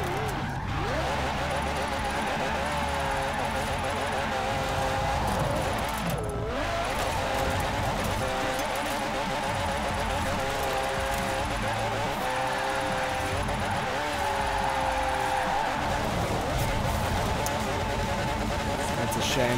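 A car engine roars steadily at high revs.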